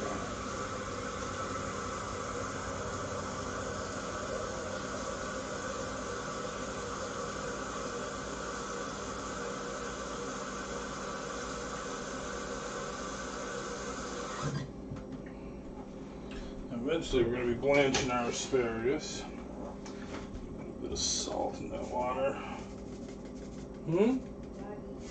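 A pot of soup simmers and bubbles softly.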